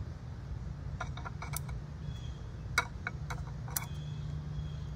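Scissors snip at twigs.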